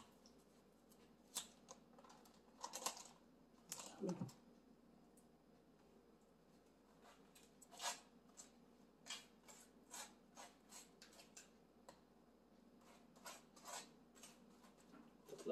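A knife scrapes spread across toast.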